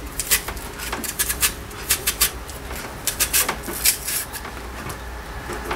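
A knife scrapes and clicks against a vegetable.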